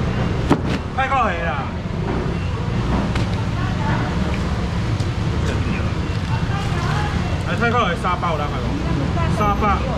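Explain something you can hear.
A man calls out loudly to a crowd.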